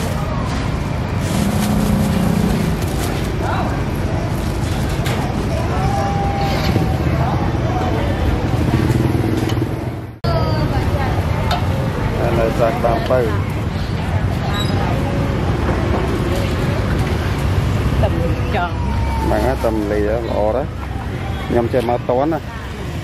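A busy street market hums with traffic outdoors.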